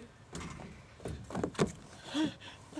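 A child slides down a plastic slide with a soft rubbing sound.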